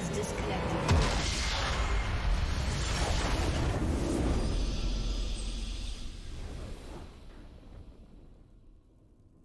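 A triumphant game fanfare swells and slowly fades away.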